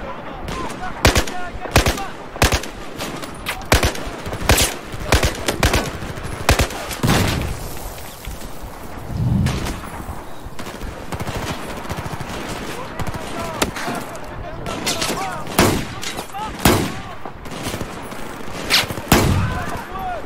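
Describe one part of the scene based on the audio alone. Gunshots crack repeatedly in quick bursts.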